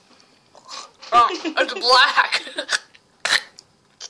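A young woman laughs loudly up close.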